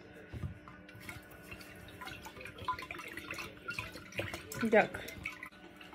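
A spatula stirs and clinks inside a glass pitcher.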